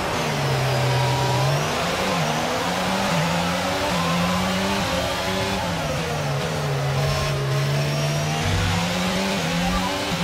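A racing car engine screams at high revs, shifting gears up and down.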